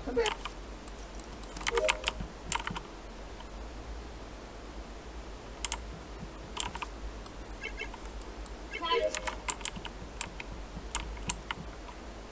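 Short electronic clicks and chimes sound from a game.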